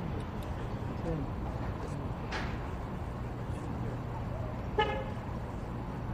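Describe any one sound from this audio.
Traffic rumbles steadily nearby.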